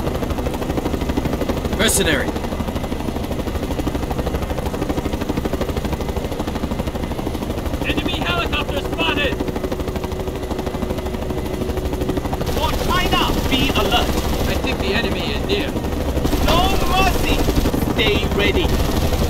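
A helicopter engine roars close by.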